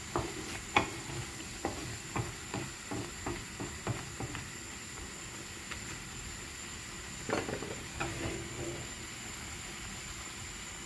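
Tomato sauce sizzles and bubbles in a pan.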